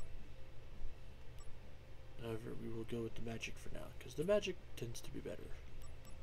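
Menu selections click softly and quickly.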